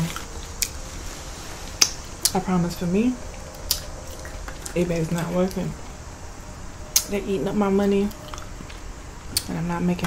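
Crisp food crunches and crackles in a young woman's hand.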